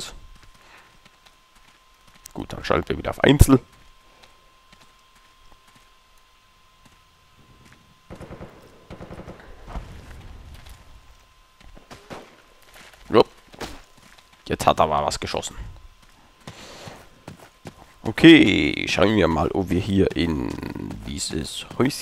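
Boots crunch steadily on gravel.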